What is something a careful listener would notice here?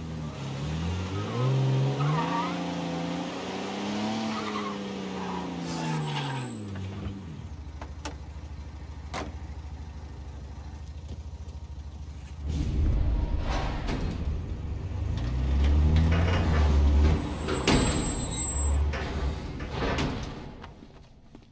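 A car engine rumbles and revs as a car drives along.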